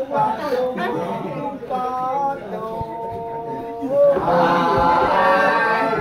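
A group of men sing together loudly.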